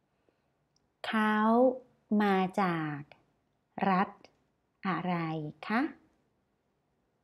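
A woman speaks slowly and clearly into a close microphone, pausing between words.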